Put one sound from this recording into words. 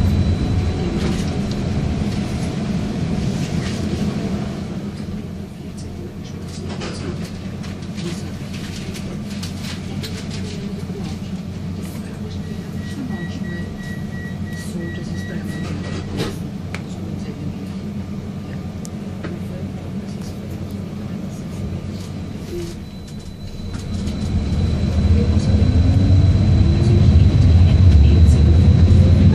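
A train rumbles steadily along its tracks, heard from inside a carriage.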